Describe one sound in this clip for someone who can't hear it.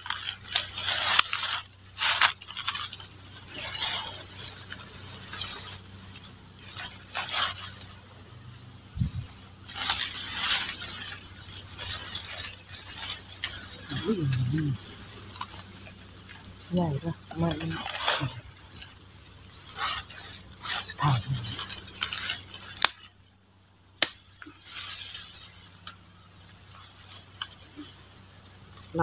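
Leaves and dry twigs rustle close by.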